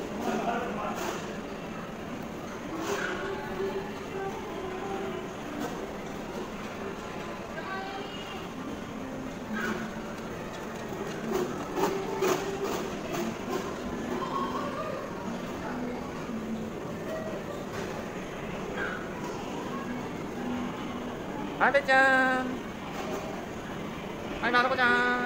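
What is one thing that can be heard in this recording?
Plastic wheels of ride-on toys roll and rumble across a hard floor.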